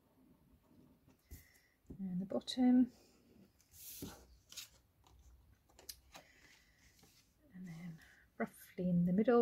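Paper rustles and crinkles as it is handled.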